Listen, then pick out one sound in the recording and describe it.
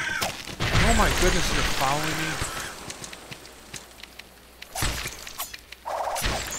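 Sword blows land with sharp, hard hits in a video game fight.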